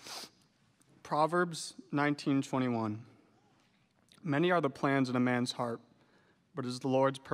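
A man reads out through a microphone in a large echoing hall.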